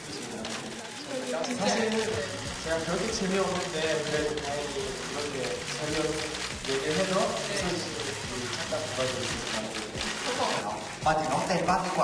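A young man speaks with animation into a microphone, heard through a loudspeaker.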